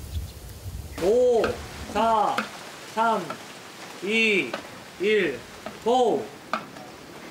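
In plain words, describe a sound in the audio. A young man counts down loudly nearby.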